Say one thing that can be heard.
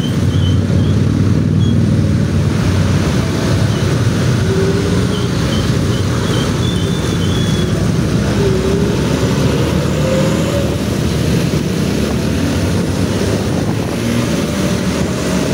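Nearby motorbike and truck engines rumble in traffic.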